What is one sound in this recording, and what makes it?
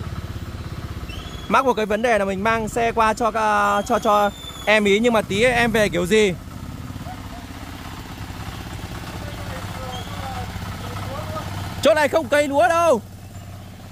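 A motorcycle engine idles and revs.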